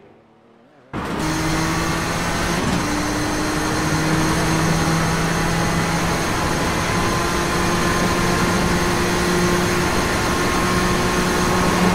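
A racing car engine roars loudly and steadily from close by.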